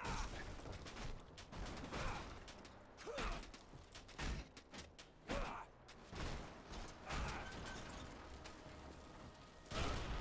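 Heavy metal panels clatter and crash as a wall is smashed apart.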